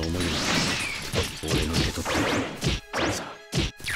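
Blades clash and ring with sharp metallic strikes.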